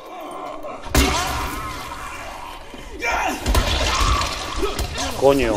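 A heavy melee weapon strikes a body with dull thuds.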